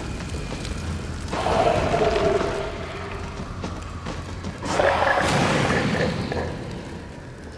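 A fiery explosion bursts with a loud roar.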